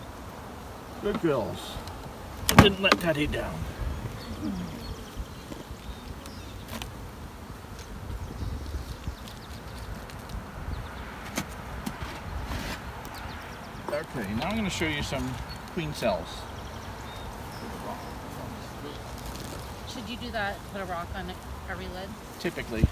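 A man speaks calmly nearby, outdoors.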